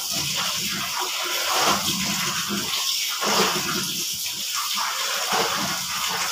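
Water drips and splatters as wet clothes are wrung out.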